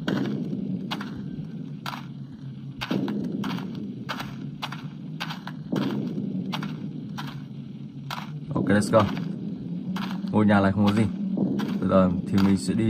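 Footsteps crunch at an even pace on rough ground.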